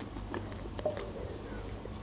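A young woman sips a drink from a can.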